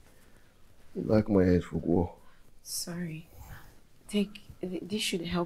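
A woman speaks with concern nearby.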